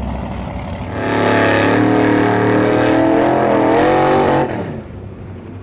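A truck engine roars and revs in the distance across the water.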